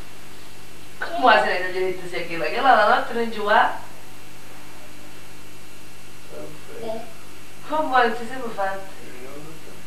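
A young child speaks in a high, lively voice close by.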